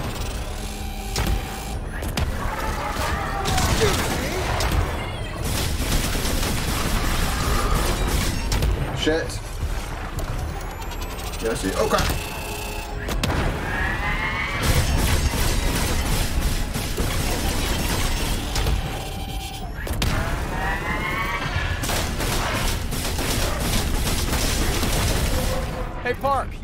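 Game laser blasts and explosions boom and crackle throughout.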